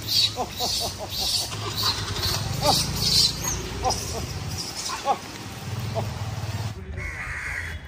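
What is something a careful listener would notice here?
Monkeys squeal and chatter nearby.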